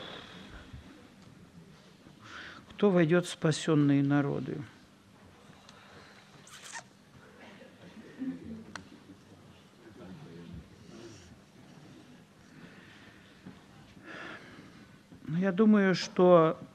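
A middle-aged man reads out into a microphone over loudspeakers in a hall.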